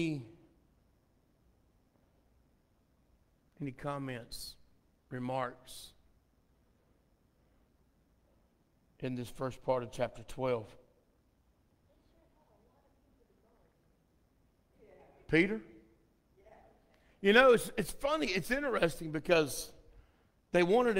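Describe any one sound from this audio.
A man speaks through a microphone in bursts with pauses, echoing in a large hall.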